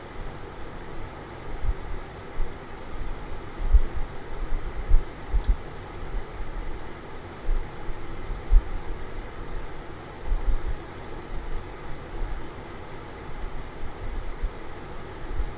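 Soft game clicks sound as items are moved in a menu.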